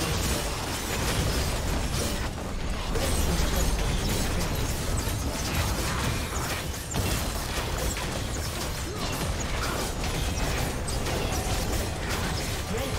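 Magic blasts and sword clashes crackle and burst in a busy fight.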